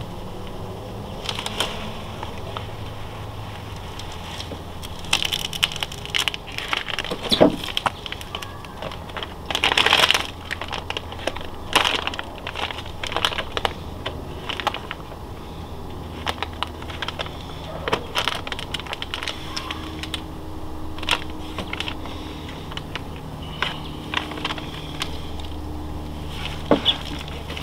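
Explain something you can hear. A paper towel rubs and squeaks against a smooth panel in short bursts.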